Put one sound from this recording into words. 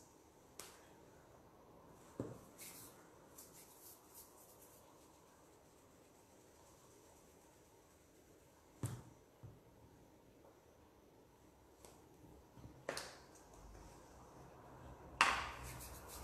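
Hands tap and set small pieces down on a hard table.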